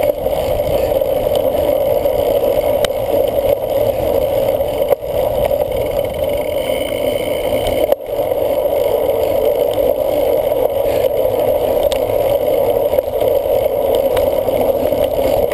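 Wind rushes past a moving bicycle.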